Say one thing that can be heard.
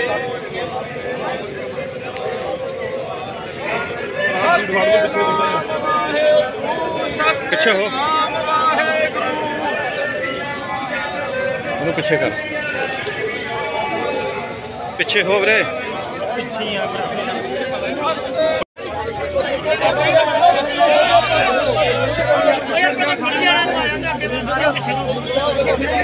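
A crowd of men chants and talks loudly outdoors.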